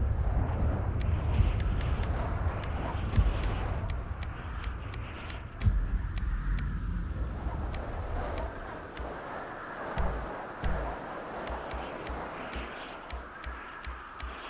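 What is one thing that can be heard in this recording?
Soft electronic menu clicks tick in quick bursts.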